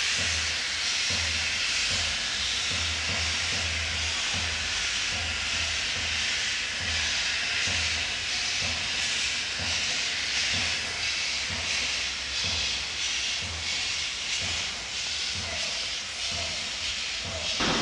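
A steam locomotive chuffs in rhythmic puffs as it pulls slowly away.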